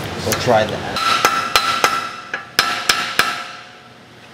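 A hammer strikes metal with sharp clanks.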